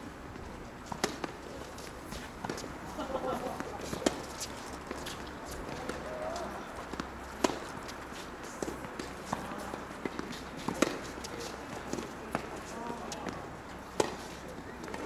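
Tennis balls are struck with rackets in a rally, with sharp pops.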